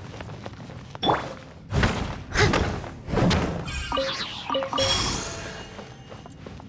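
Crystals shatter with loud ringing cracks.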